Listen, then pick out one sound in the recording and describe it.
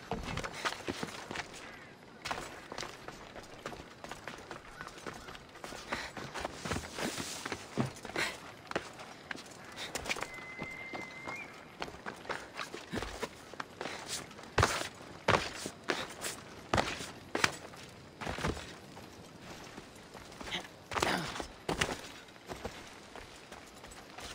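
Footsteps and hand grips scrape on stone as a figure climbs and runs.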